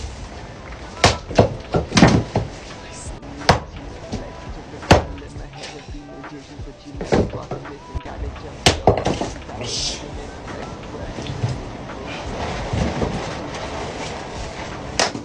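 A splitting maul strikes a log with sharp thuds.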